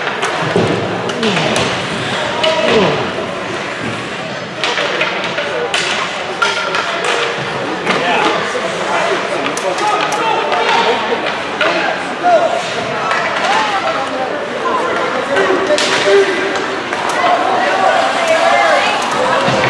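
Spectators shout and cheer in a large echoing rink.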